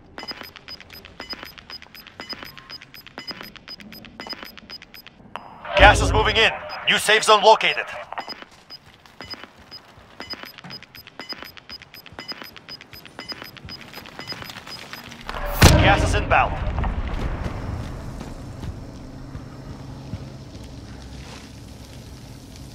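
Footsteps tread quickly over a hard floor.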